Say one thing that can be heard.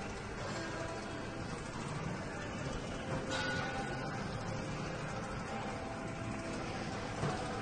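Footsteps thud rhythmically on a treadmill.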